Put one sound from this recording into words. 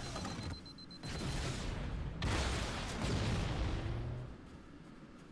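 Gunfire rattles in loud bursts.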